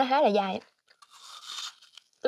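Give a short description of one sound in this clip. A young woman bites crisply into an apple close to a microphone.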